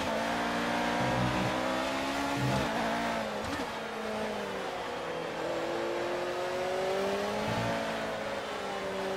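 A racing car engine roars at high revs, its pitch rising and falling through gear changes.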